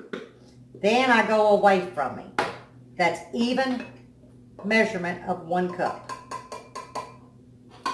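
A spoon clinks against a cup.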